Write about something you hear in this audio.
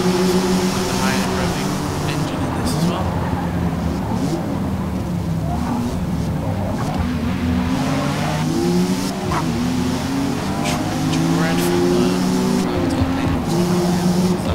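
Several other race car engines roar close by.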